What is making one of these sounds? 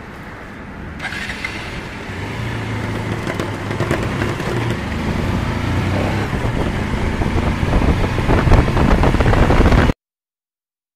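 A motorcycle engine revs up and rides along, growing louder.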